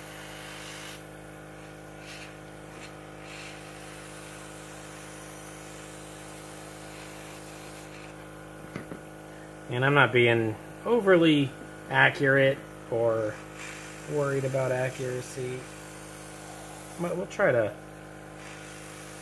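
An airbrush hisses in short bursts of spray.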